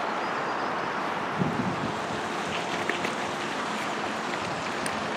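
Water rushes and roars steadily nearby.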